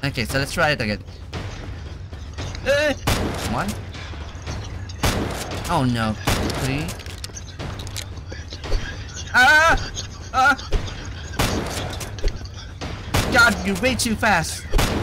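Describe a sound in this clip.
A young man talks and exclaims with animation into a microphone.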